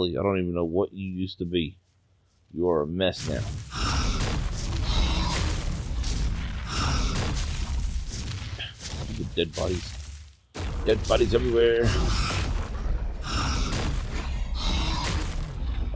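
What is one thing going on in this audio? Large wings beat heavily in flight.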